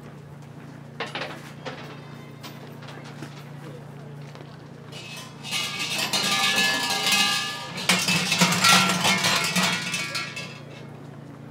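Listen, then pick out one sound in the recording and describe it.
A large metal bell rattles and jangles loudly.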